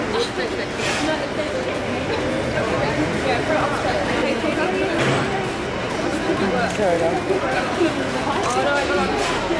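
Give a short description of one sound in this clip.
A young woman talks and laughs excitedly close by.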